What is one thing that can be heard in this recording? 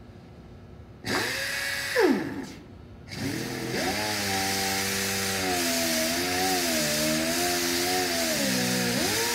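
An orbital polisher whirs loudly against a surface.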